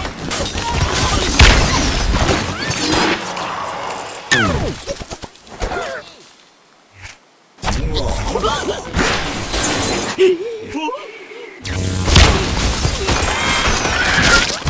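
A wooden tower crashes and collapses with a clatter.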